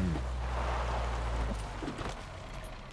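A car engine rumbles low and then stops.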